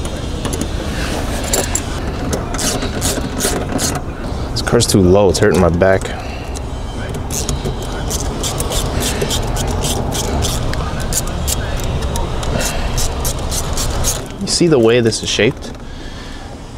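A ratchet wrench clicks rapidly as it turns.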